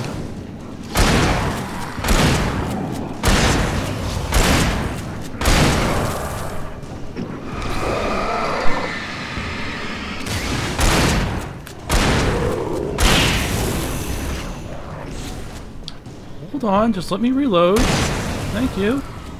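A revolver fires loud shots.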